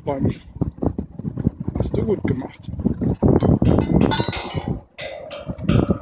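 A child strikes wooden chimes with a mallet, making hollow knocking tones.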